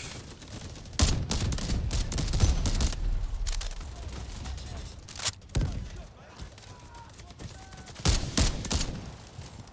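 Rifle shots crack loudly, one at a time.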